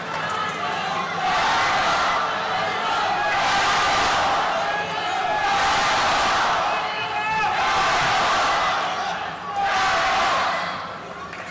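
A large crowd chants in loud rhythmic waves in an echoing hall.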